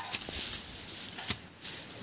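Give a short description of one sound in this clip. A hoe strikes the soil with dull thuds.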